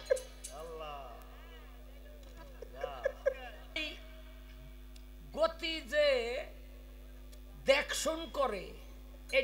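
A man sings with feeling into a microphone, in short bursts.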